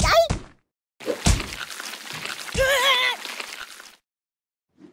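Thick liquid splashes and gurgles as a canister bursts.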